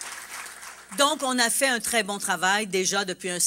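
A middle-aged woman speaks steadily into a microphone.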